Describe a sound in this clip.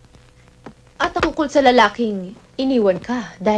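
A young woman speaks nearby in a tense, raised voice.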